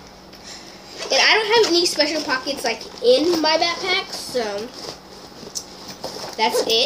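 A young girl talks close by with animation.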